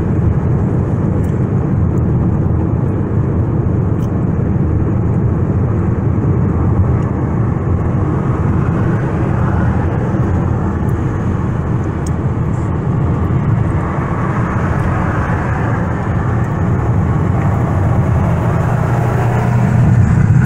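A car's engine hums steadily from inside as it drives along a highway.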